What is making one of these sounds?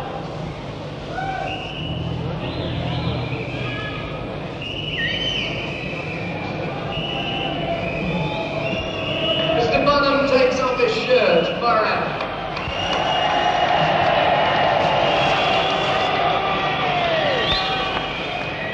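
An electric guitar plays a rock tune.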